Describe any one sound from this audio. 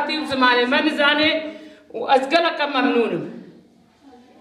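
An elderly woman speaks loudly nearby.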